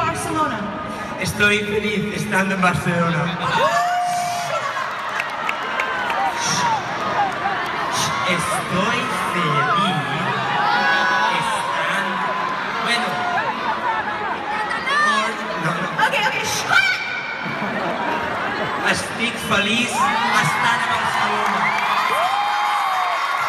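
A woman sings into a microphone, loud through speakers in a large echoing arena.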